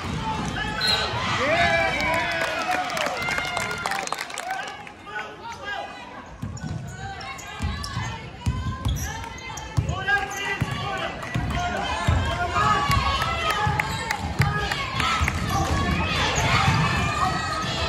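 A crowd cheers and shouts in a large echoing gym.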